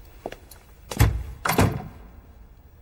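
A wooden door shuts with a heavy thud.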